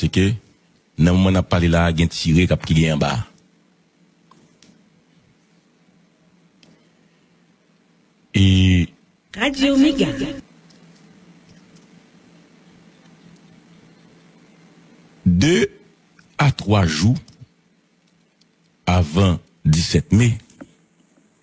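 A man speaks calmly and close into a microphone, in short bursts with pauses.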